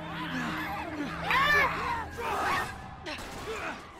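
A man shouts sharply.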